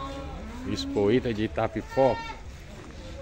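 Goats bleat.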